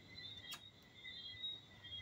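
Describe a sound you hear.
A lighter flicks and lights.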